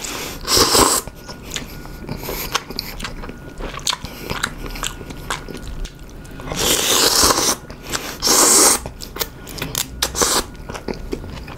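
A man chews noisily with wet, smacking sounds.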